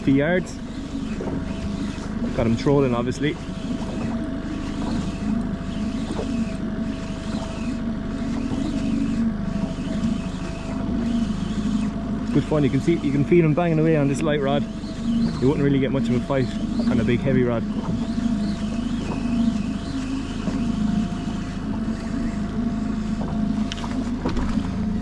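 Small waves lap against the side of a boat.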